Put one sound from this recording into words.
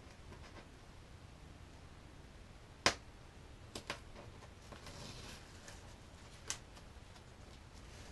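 Hands rustle and crinkle plastic wrapping.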